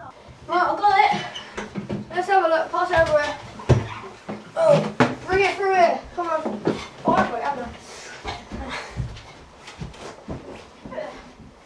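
Feet clatter on a metal ladder.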